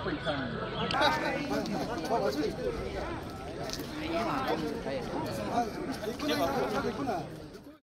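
A man talks outdoors.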